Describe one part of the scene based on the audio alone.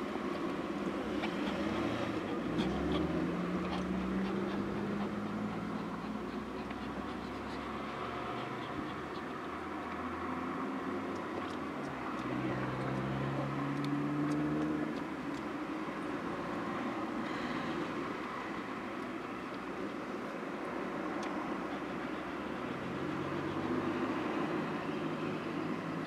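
Cars drive past through a roundabout, rising and fading.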